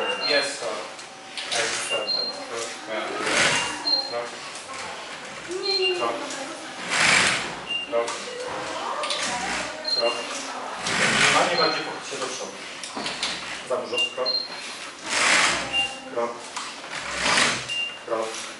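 A robotic exoskeleton gives short high beeps.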